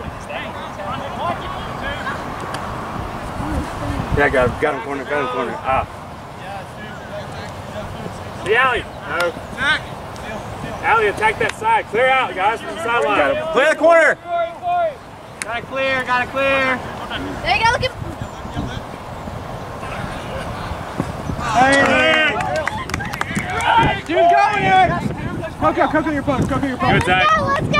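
Men shout and call out to one another across an open field.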